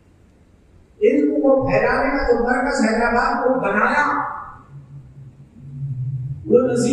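An elderly man chants loudly into a microphone, heard through a loudspeaker in an echoing hall.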